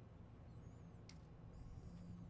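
A short electronic click sounds as a menu selection changes.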